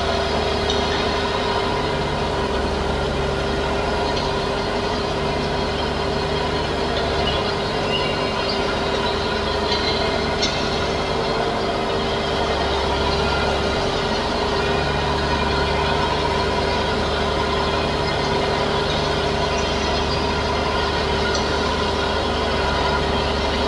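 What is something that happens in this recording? A mower whirs as it cuts grass.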